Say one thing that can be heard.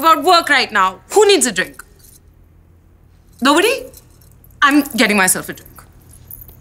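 A young woman speaks angrily, close by.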